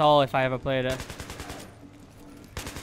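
A rifle fires a rapid burst of shots.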